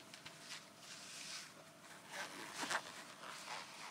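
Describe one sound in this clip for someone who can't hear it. Fingers rustle and brush against fabric close by.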